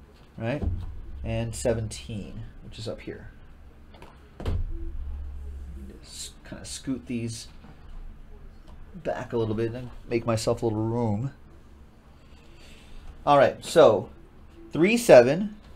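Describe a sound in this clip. Cardboard boxes slide and knock against each other.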